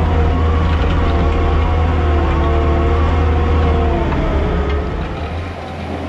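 A diesel engine rumbles loudly up close.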